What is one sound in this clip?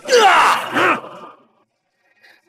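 A man shouts loudly and sharply.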